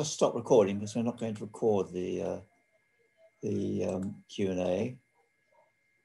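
An elderly man speaks calmly through an online call microphone.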